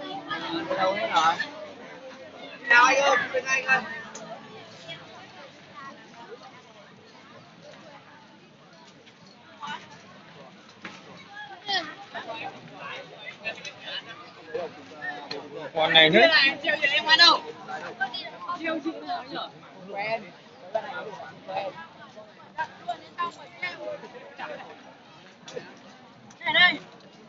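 A crowd of people chatters all around outdoors, with close voices now and then.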